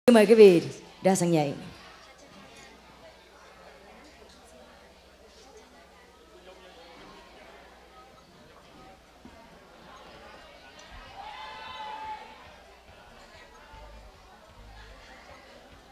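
A crowd chatters quietly in the background.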